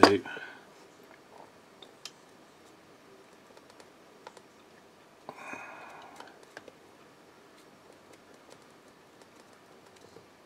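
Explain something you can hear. A paintbrush taps and brushes softly against a small plastic figure.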